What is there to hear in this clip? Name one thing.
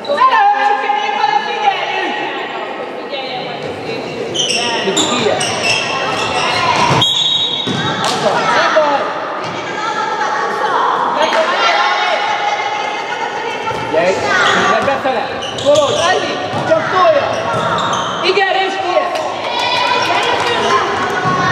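A ball bounces on a hard floor.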